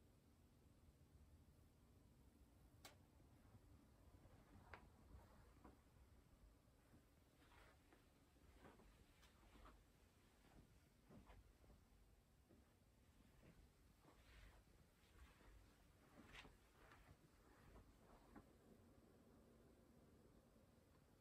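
A computer fan hums steadily and quietly.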